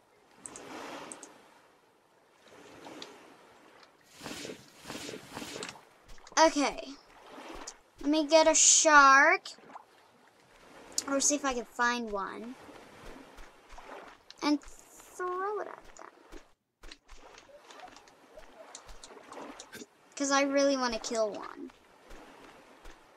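Water swirls and splashes as someone swims.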